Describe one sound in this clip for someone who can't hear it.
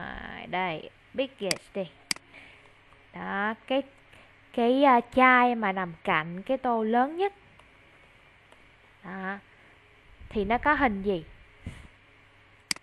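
A woman speaks clearly and with animation over an online call.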